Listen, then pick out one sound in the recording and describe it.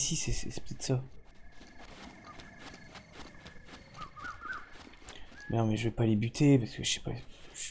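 Footsteps patter quickly over grass and sand.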